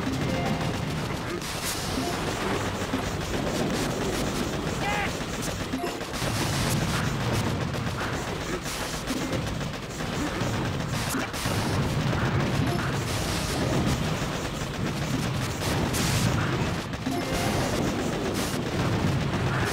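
Cartoon guns fire in rapid, busy bursts.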